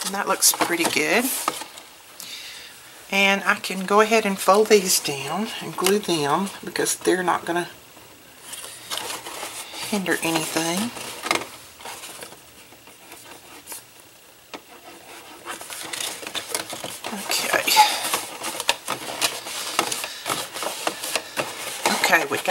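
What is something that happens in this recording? Stiff paper rustles and scrapes as hands fold and press it.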